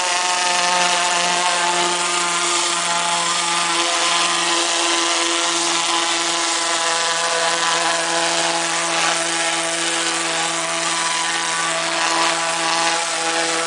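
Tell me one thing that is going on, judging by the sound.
A high-pressure water jet hisses and sprays against a hull.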